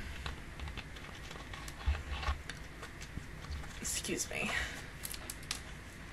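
Plastic crinkles in a young woman's hands.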